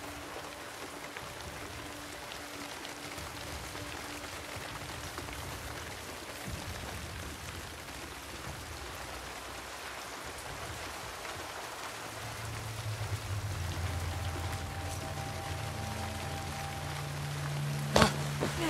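Tall grass rustles as someone crawls through it.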